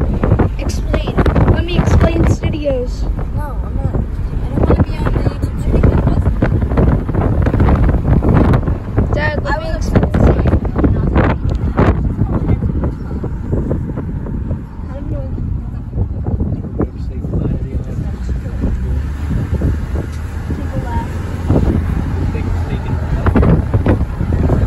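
Wind rushes loudly through an open car window.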